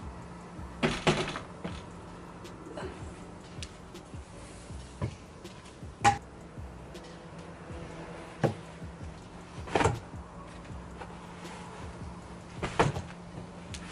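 A wicker chair bumps and knocks as it is moved.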